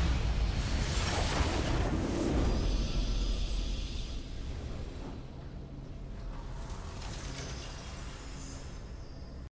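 A triumphant victory fanfare swells and then fades.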